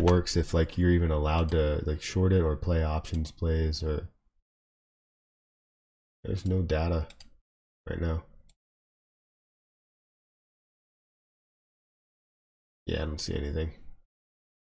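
A young man speaks casually into a close microphone, in short bursts with pauses.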